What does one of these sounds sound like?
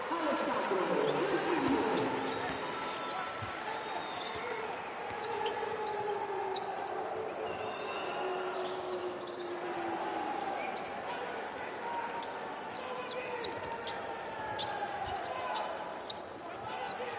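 A crowd in a large echoing arena chatters and cheers.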